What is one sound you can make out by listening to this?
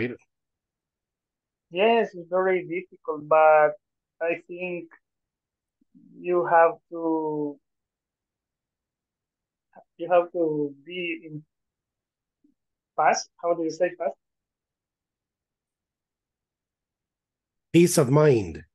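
A young man speaks calmly over an online call, in short bursts with pauses.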